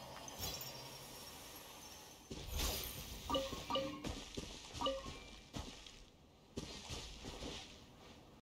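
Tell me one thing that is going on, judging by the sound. Footsteps patter quickly through grass.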